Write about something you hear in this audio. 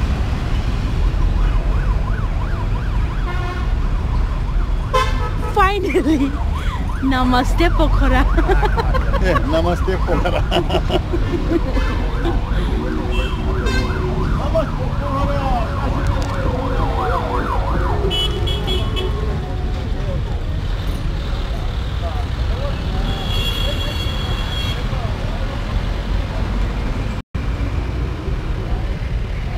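Motorcycle engines idle and rumble nearby.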